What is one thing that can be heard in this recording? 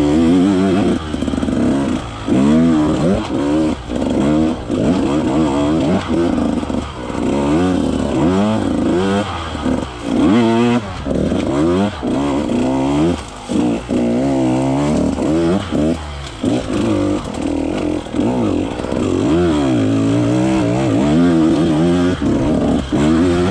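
Tyres crunch over dirt and twigs.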